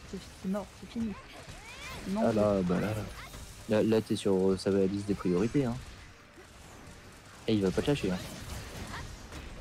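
Blades strike a large monster in rapid blows.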